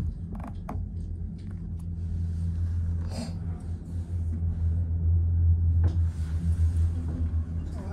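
A cable car rumbles and clatters as it rolls past a support tower.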